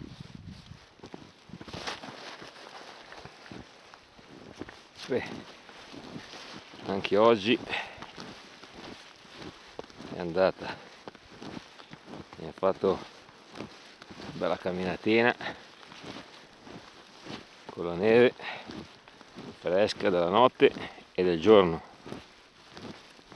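Footsteps crunch steadily through soft snow.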